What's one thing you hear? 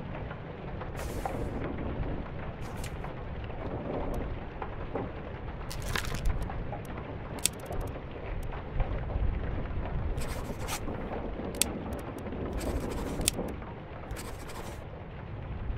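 Paper pages of a book flip and rustle.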